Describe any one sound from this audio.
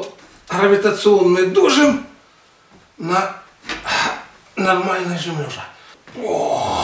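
An elderly man speaks close by.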